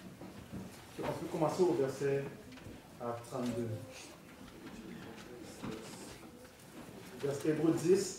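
A young man speaks slowly into a microphone, heard through loudspeakers.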